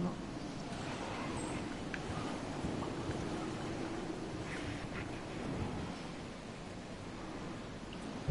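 A man talks casually, close to a headset microphone.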